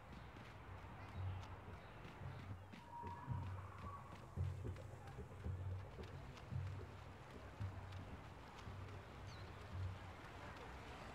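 Footsteps run quickly on stone.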